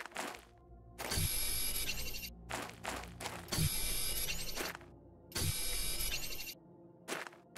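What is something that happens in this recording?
A mining laser hums and crackles in short bursts.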